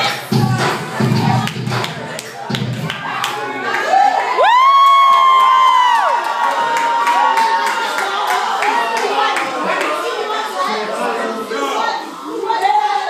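A crowd of people talks and cheers loudly in an echoing room.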